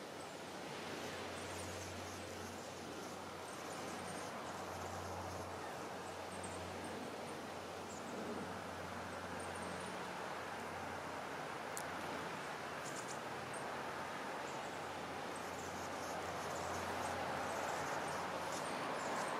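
Many seabirds call faintly over open water.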